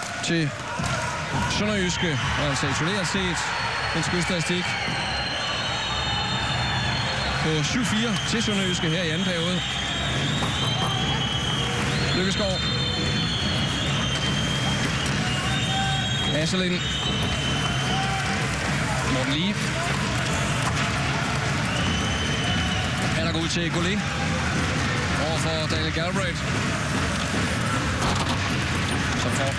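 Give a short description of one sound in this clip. Hockey sticks slap a puck with sharp cracks.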